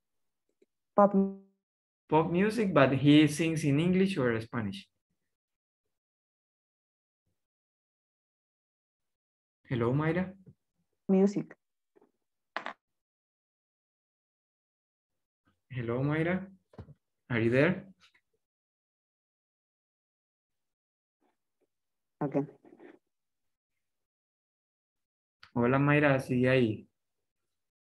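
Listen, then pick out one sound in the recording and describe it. A man speaks calmly in short bursts over an online call.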